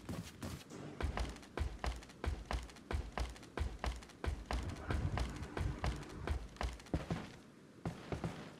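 Footsteps thud steadily on the ground.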